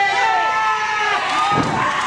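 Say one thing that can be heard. A man shouts out in strain nearby.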